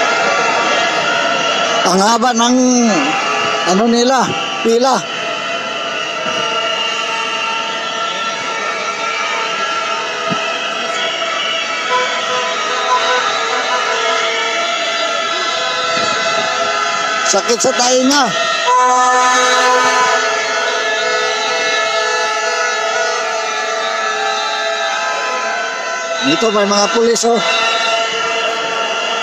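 A large crowd of protesters chants and shouts outdoors.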